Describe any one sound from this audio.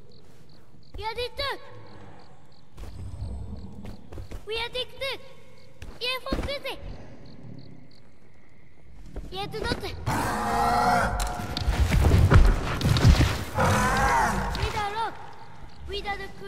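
A large creature gives high, warbling chirps and cries.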